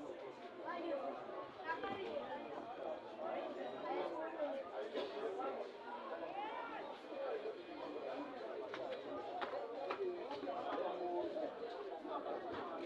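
Players on a field shout and call to each other.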